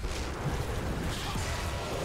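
Laser beams zap.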